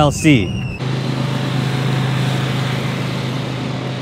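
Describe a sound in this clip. Motorbikes ride past on a road.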